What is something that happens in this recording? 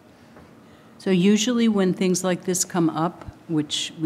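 An older woman speaks calmly into a microphone.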